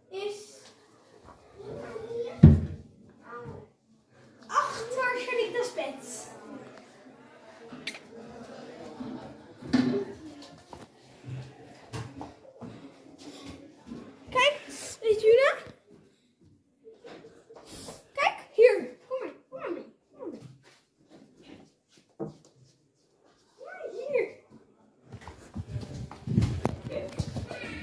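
A young boy talks and laughs playfully, close by.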